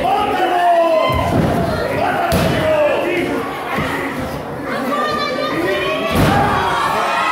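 Wrestlers thud heavily onto a ring mat.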